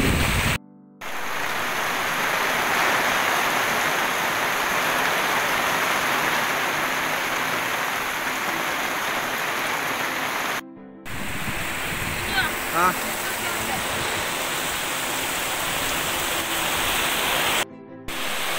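Heavy rain falls steadily outdoors.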